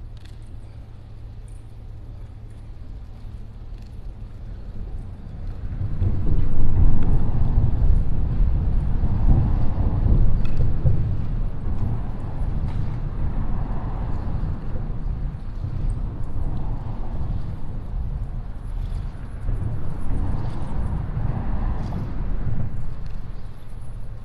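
Water laps gently against a concrete wall.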